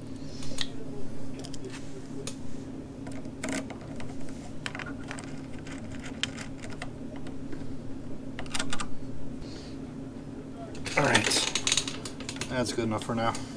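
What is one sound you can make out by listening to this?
Plastic connectors click as wires are plugged together.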